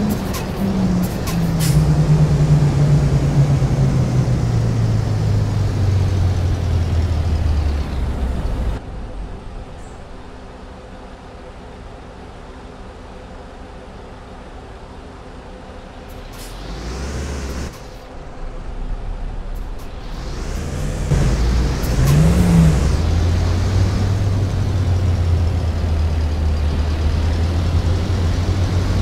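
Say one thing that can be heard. A bus engine drones, slowing down, idling low, then revving up again.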